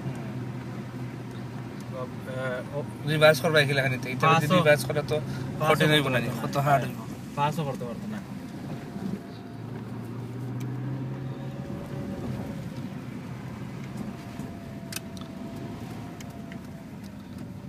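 A car engine hums steadily while driving slowly, heard from inside.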